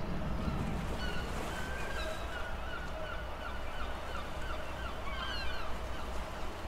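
Gulls call far off.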